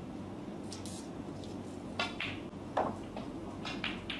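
A snooker ball thuds into a pocket.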